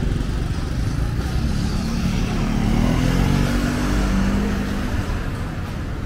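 A motor scooter engine hums past close by.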